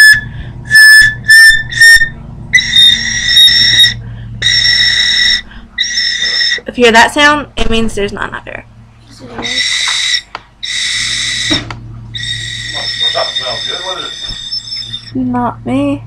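A high flute plays sustained notes close by.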